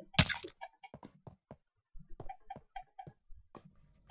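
Lava bubbles and pops softly.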